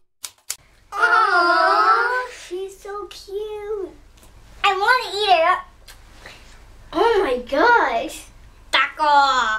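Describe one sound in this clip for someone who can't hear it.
Young children sing together in high voices, close by.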